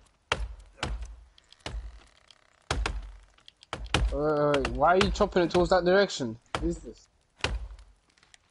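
An axe chops into a tree trunk with sharp, repeated thuds.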